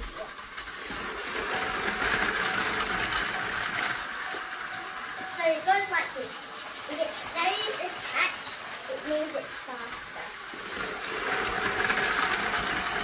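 A small toy train motor whirs steadily as the train rattles along plastic track.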